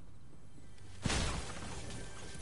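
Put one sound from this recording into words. A wooden wall smashes apart with a loud crash.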